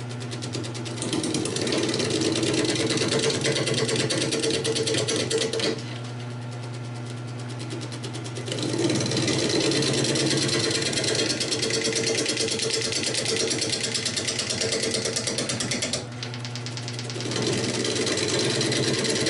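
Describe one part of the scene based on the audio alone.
A chisel scrapes and cuts into spinning wood in bursts.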